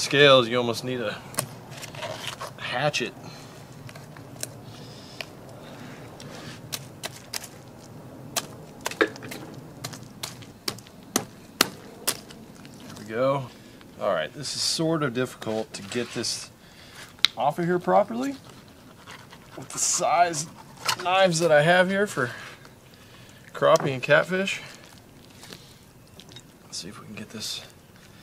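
A knife cuts and scrapes through fish.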